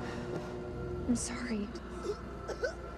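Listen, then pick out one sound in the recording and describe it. A young woman speaks softly and shakily.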